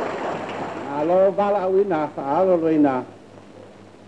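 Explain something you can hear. A man speaks loudly and with emphasis.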